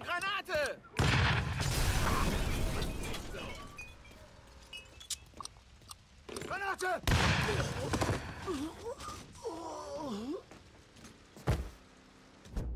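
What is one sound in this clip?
Gunfire rattles in loud bursts.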